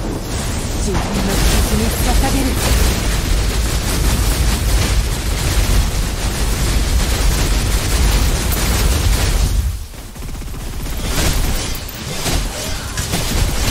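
Game gunfire and energy blasts crackle and boom in rapid bursts.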